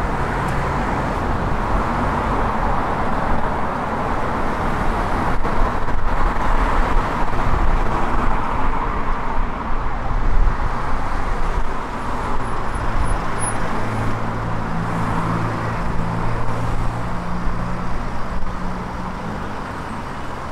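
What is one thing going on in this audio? Car traffic rumbles past steadily on a street outdoors.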